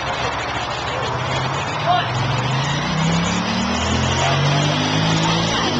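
A car drives past on a street, its engine rising.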